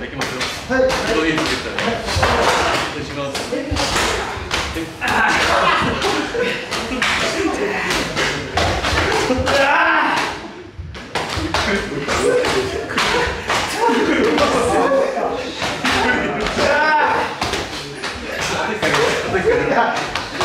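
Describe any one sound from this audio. Bare feet thump and shuffle on a wooden floor.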